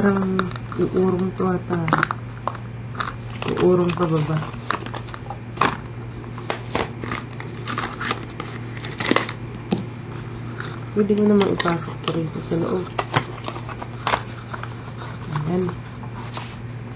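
Hands rustle and tap objects in a cardboard box.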